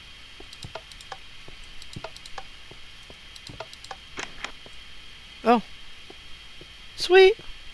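Wooden torches are placed against stone with soft, quick clicks.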